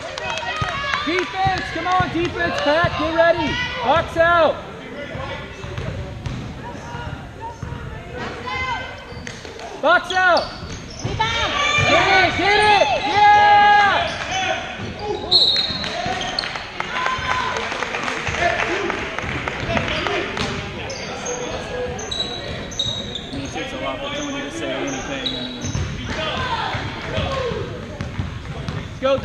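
Girls shout and cheer in a large echoing gym.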